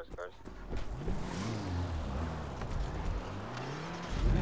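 A car engine revs as the car pulls away.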